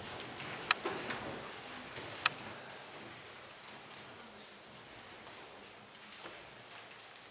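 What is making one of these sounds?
Papers rustle softly close by.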